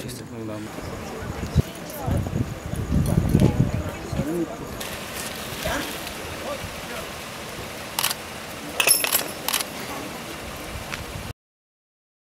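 Several men talk nearby outdoors.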